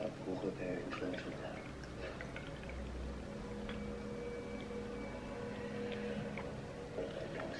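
Tea pours from a teapot into a cup.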